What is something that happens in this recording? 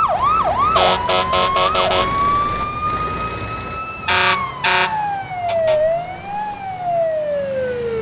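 A police siren wails.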